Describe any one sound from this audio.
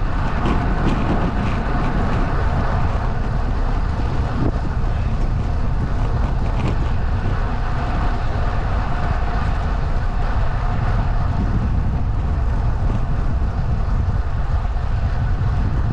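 Small wheels roll steadily over rough asphalt with a low rumble.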